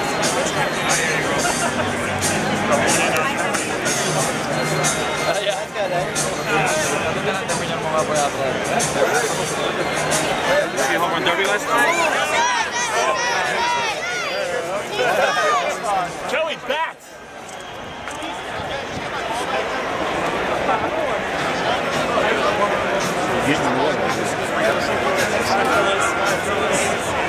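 A large crowd chatters all around, close by, outdoors.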